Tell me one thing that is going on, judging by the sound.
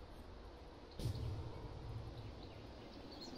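A deep magical boom rumbles and fades.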